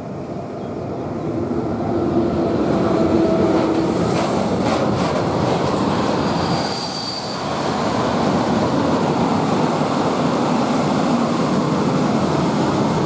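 A long freight train rumbles past with wheels clattering on the rails.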